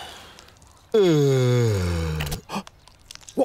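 A man yawns long and loudly.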